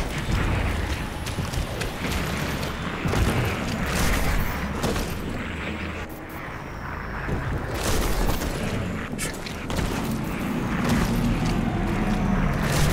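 Heavy footsteps thud on rough ground.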